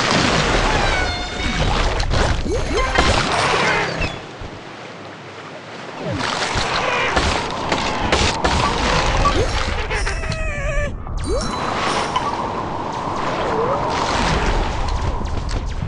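A shark chomps with crunching bites.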